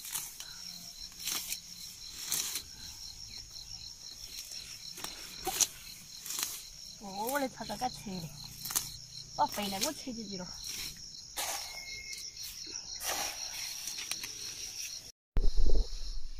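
Leaves rustle and crackle close by.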